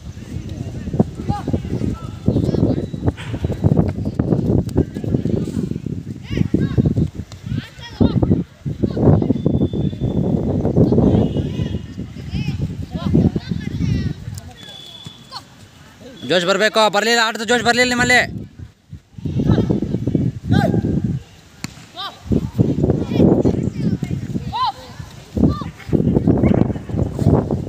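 Boys call out to each other outdoors.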